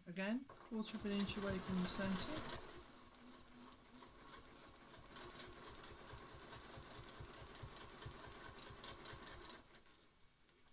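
A sewing machine stitches steadily.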